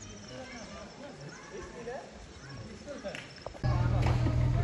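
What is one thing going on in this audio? Monkeys call out from a rocky cliff.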